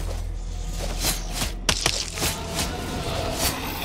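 Swords slash and clang in quick bursts.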